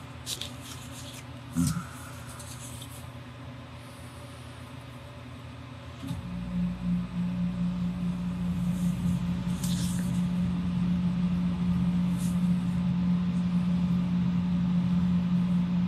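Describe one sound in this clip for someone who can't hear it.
A pen scratches lightly across paper.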